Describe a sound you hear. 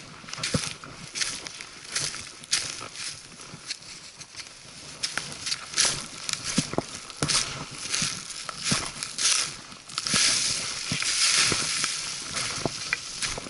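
Footsteps crunch and snap dry twigs and leaves on a forest floor at a steady walking pace.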